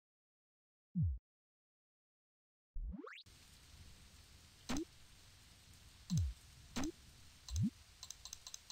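Short electronic game sounds swoop and blip as menus open and close.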